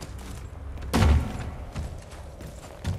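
A heavy thud sounds as someone lands hard.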